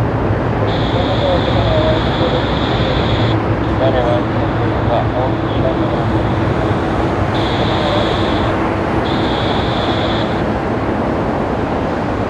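A jet airliner roars loudly as it climbs away after takeoff.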